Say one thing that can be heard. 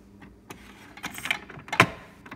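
A plastic lid of a coffee maker snaps shut.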